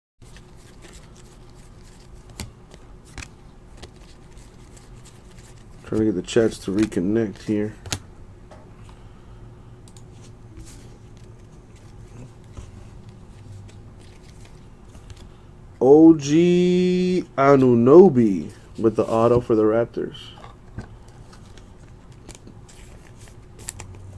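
Cardboard trading cards shuffle and slide softly against each other.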